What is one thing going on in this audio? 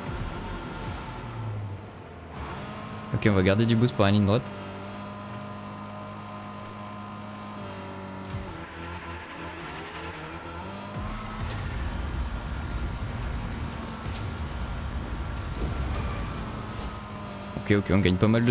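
A racing car engine hums steadily and changes pitch as it speeds up.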